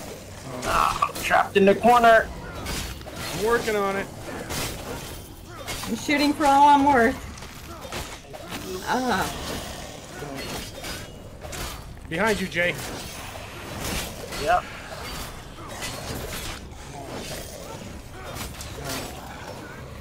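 Blades clash and slash in quick, sharp hits.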